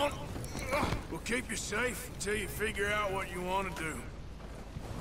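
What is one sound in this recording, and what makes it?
A man speaks urgently, close by.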